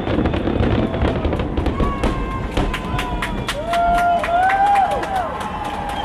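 Fireworks whistle as they rise.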